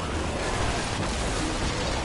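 A burst of energy blasts with a loud whoosh.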